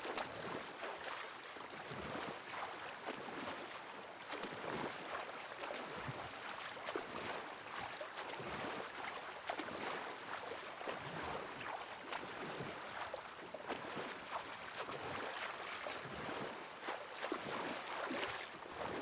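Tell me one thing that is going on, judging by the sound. Water laps and gurgles against a small wooden boat.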